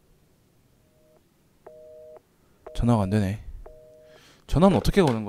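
A telephone earpiece beeps with short tones.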